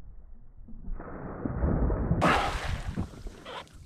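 A cast net splashes down onto water.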